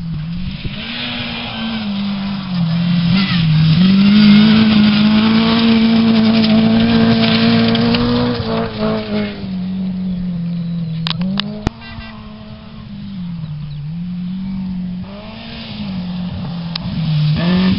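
A rally car engine roars and revs, rising and falling as the car races past.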